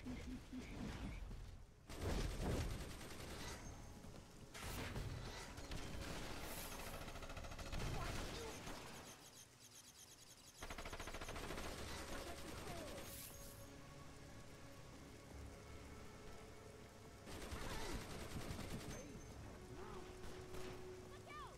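Punches thud in a fight.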